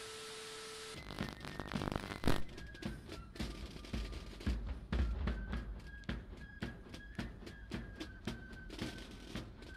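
A military band plays with drums through a television speaker.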